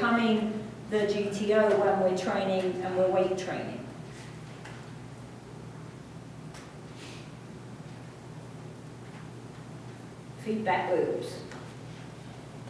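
A young woman speaks calmly, with pauses.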